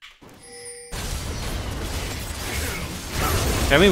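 Video game combat effects crackle and burst during a fight.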